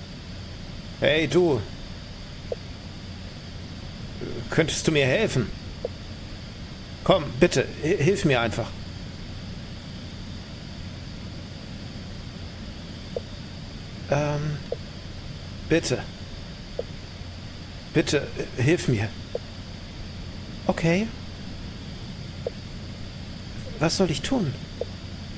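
A man speaks in short bursts close to a microphone, reading out and reacting calmly.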